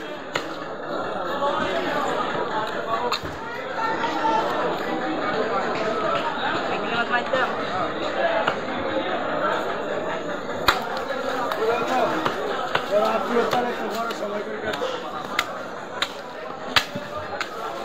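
A knife scrapes and cuts through fish flesh.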